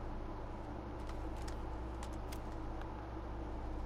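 Footsteps scuff on the ground.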